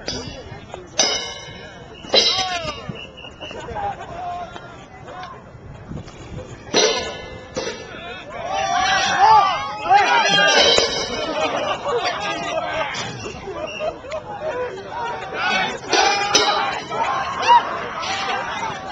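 Cymbals are struck with mallets and ring out, outdoors.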